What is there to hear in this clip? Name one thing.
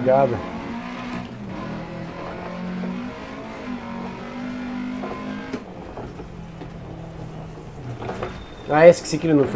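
A rally car engine roars and revs.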